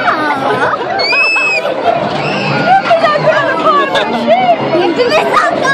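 A young boy laughs and squeals excitedly close by.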